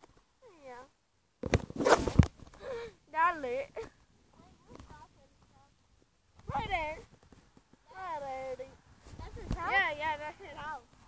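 A young boy talks and squeals playfully close to the microphone.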